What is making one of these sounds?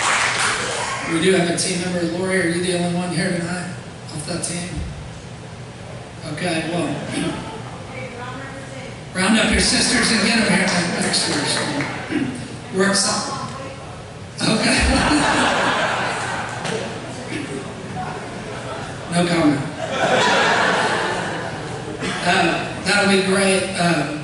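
A man speaks calmly through a microphone, echoing in a large hall.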